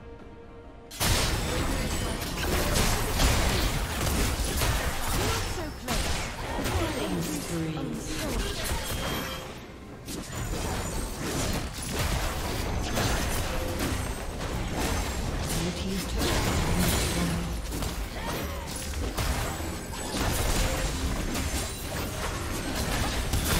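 Spell blasts, hits and clashing weapons crackle in a busy fantasy battle.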